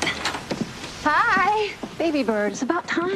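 A young woman speaks warmly and softly up close.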